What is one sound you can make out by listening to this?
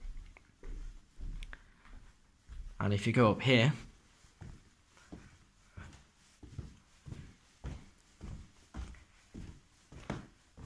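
Footsteps thud steadily up carpeted stairs.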